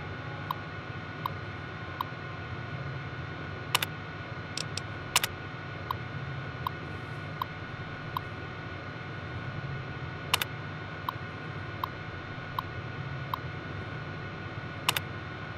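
A computer terminal hums steadily.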